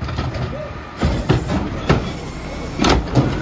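A lifted bin bangs against a truck's hopper.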